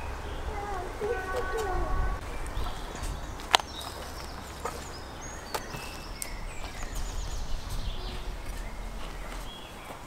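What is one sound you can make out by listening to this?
A knife chops meat on a wooden board.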